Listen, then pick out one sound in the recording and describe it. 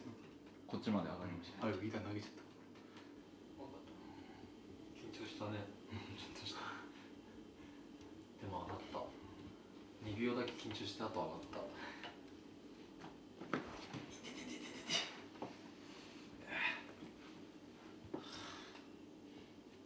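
Young men talk casually nearby.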